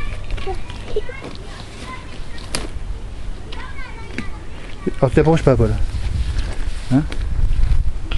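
A young child babbles and squeals close by.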